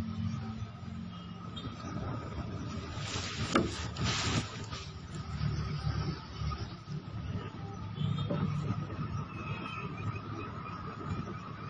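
A man talks quietly close by.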